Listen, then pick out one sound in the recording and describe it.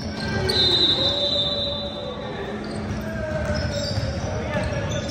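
Voices of young players murmur and call out in a large echoing hall.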